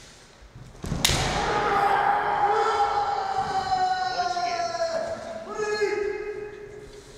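A man shouts loudly and long in a large echoing hall.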